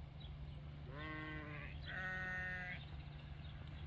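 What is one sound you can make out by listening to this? A sheep bleats loudly nearby.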